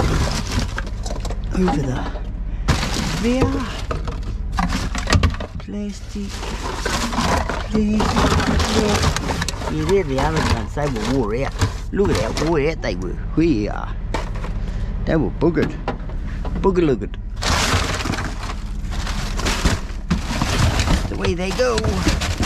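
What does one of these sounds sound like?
Plastic bottles and cardboard rustle and clatter as a hand rummages through trash.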